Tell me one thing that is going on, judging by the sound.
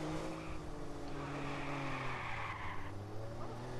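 Car tyres screech as the car drifts around a corner.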